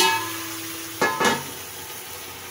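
A metal lid clanks down onto a pan.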